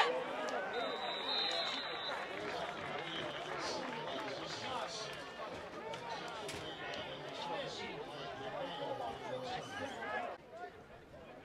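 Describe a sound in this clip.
A crowd of young men shout and cheer excitedly close by.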